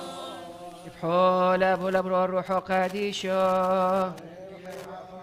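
A man chants loudly in a large echoing hall.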